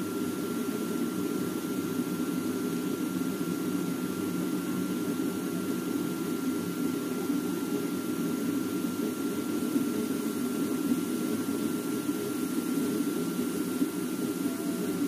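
A vacuum cleaner hums steadily, sucking air from a plastic storage bag.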